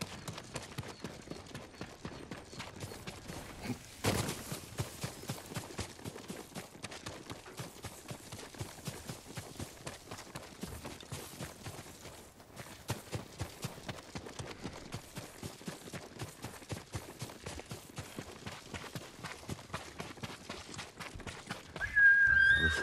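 Quick footsteps run through grass and over dirt.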